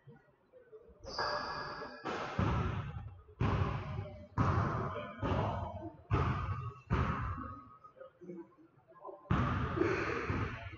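A basketball bounces on a wooden floor with loud echoing thuds.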